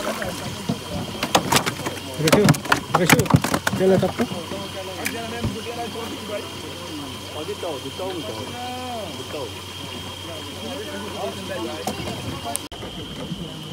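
Men talk and call out with animation nearby, outdoors.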